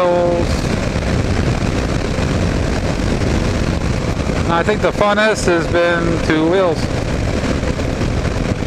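Strong wind rushes and buffets loudly throughout.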